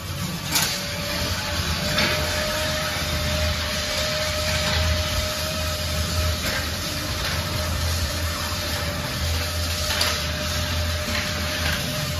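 A small engine's rumble echoes inside a metal tunnel.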